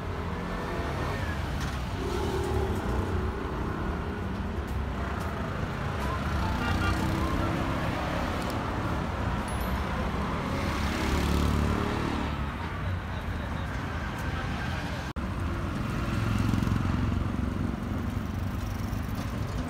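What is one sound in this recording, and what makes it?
Auto rickshaw engines putter along a street outdoors.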